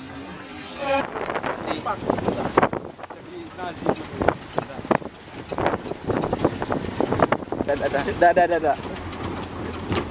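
A jeep rattles and bumps over a rough gravel track.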